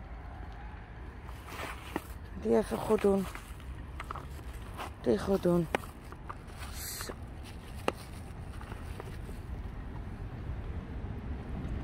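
Footsteps tap on paving stones close by.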